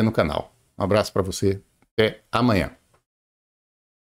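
A middle-aged man speaks calmly and close through an online call.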